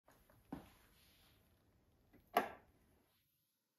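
Hard plastic parts of a record player knock and clatter as they are handled.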